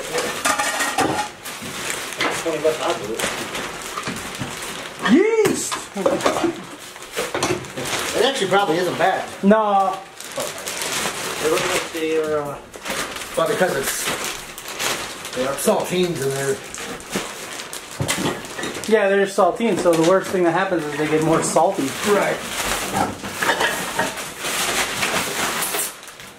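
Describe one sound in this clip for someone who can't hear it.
Plastic trash bags rustle and crinkle.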